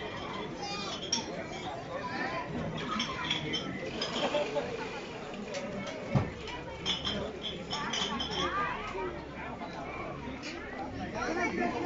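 A crowd of women and children chatter nearby outdoors.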